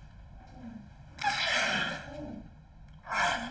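A young woman screams loudly.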